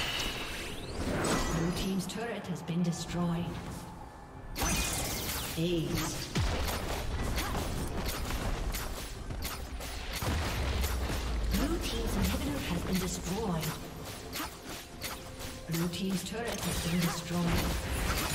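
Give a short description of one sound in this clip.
Magic blasts and hits crackle and thump in a fast fight.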